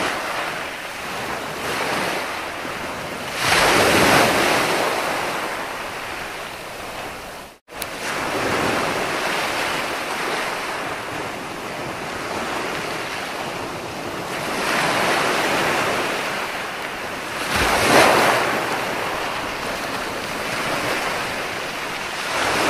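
Foamy water hisses as it drains back over sand.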